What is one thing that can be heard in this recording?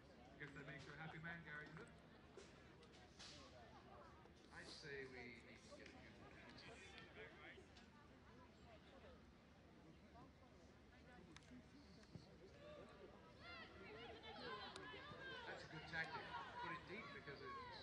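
Young women shout and call out to each other across an open field outdoors.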